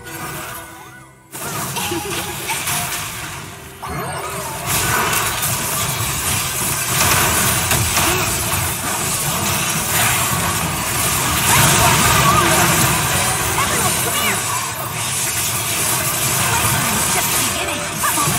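Game spell effects crackle and blast during a fight.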